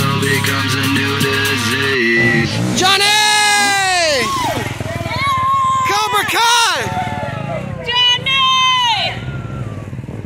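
A dirt bike engine revs loudly, rising and falling.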